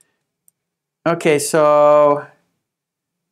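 A man speaks clearly and with animation into a close microphone.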